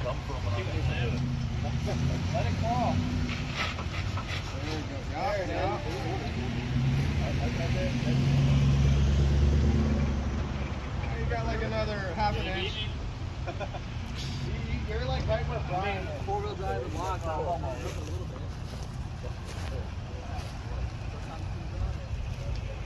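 A truck engine idles and rumbles nearby.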